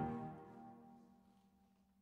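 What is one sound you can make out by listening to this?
A clarinet plays a final note that quickly stops.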